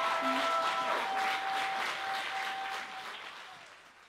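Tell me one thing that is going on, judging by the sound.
A woman sings a held note through a microphone.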